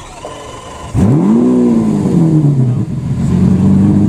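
A sports car engine starts with a loud rising and falling rev.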